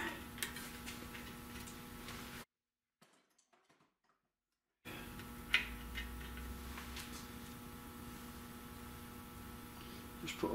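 Metal parts clink and tap.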